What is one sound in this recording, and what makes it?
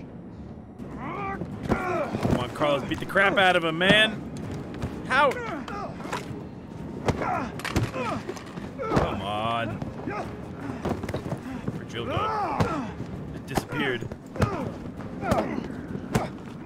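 Two men grunt and shout loudly as they fight.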